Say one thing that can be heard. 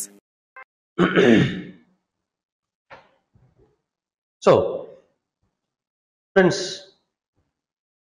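A middle-aged man speaks calmly into a clip-on microphone, in short bursts with pauses.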